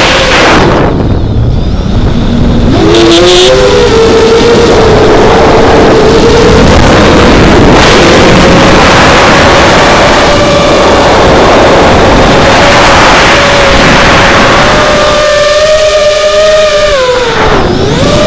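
A small drone's motors whine loudly, rising and falling in pitch.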